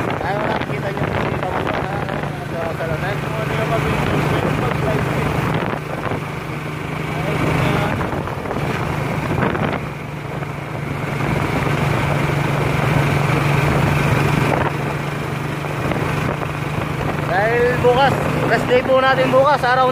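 A vehicle's engine hums steadily as it drives along.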